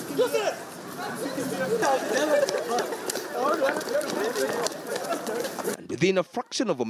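A crowd of people shouts and clamours outdoors.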